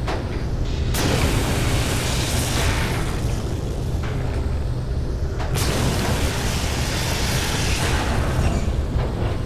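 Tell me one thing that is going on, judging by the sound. An underwater cutting torch hisses and roars.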